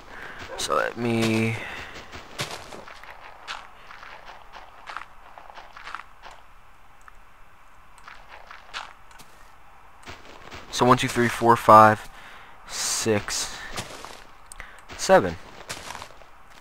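Blocks of dirt crunch repeatedly as they are dug out.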